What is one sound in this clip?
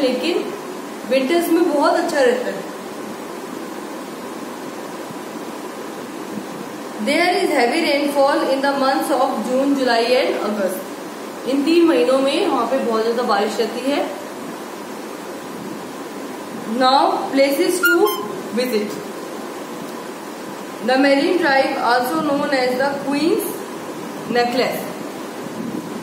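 A young woman speaks calmly and clearly close by, in short phrases with pauses.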